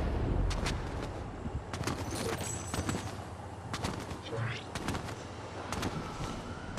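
Wind rushes steadily past a gliding character.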